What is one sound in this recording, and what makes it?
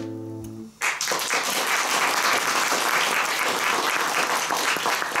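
Acoustic guitars strum a chord and ring out.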